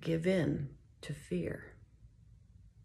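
A woman speaks calmly and close up.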